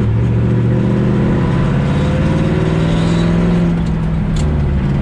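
An old truck's cab rattles over a bumpy road.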